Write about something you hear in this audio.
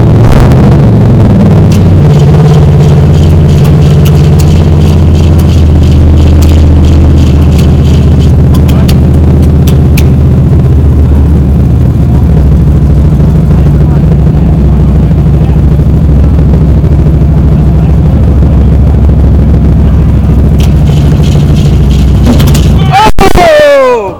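A car engine idles with a loud, rough rumble close by, then cuts off.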